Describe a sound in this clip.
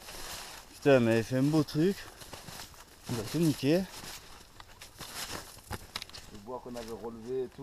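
A man calls out loudly nearby in a sing-song voice.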